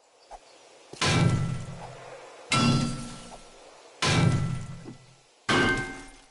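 A club strikes stone blocks with loud, ringing thuds, again and again.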